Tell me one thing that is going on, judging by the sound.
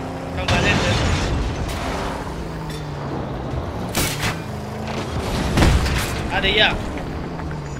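Heavy metal crashes and bangs ring out.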